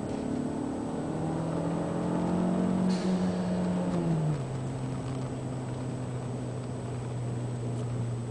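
A car engine revs up, then drops in pitch as the gear changes.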